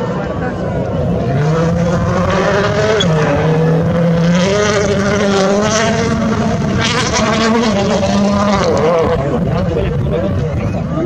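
A rally car engine roars and revs hard, rising and falling as the car shifts gears.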